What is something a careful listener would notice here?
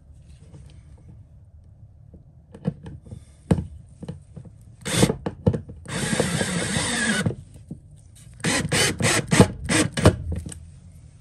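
Gloved hands knock and click against a battery terminal.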